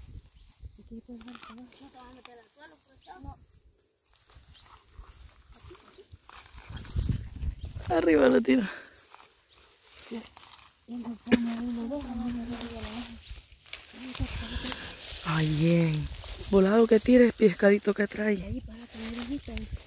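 Young women talk and call out to each other nearby, outdoors.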